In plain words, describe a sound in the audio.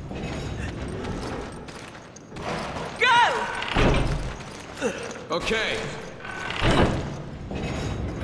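A heavy metal lever is pulled with a loud clank.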